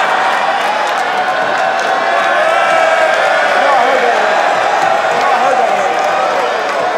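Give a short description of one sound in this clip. A large crowd cheers and shouts loudly in a big echoing hall.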